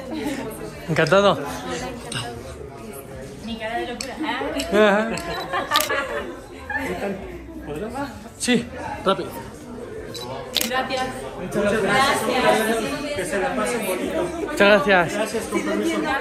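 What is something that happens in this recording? A woman laughs loudly close by.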